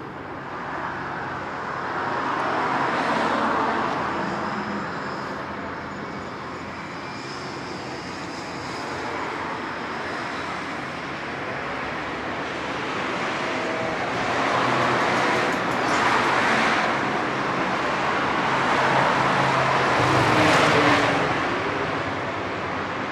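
Traffic passes by on a nearby road, rising and fading.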